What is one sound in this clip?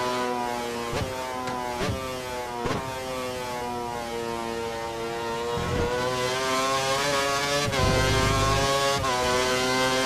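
Gears clunk as the racing car shifts.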